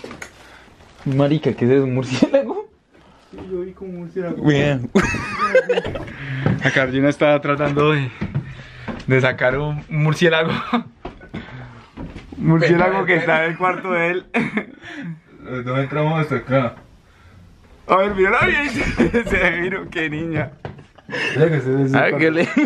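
A young man talks animatedly close by.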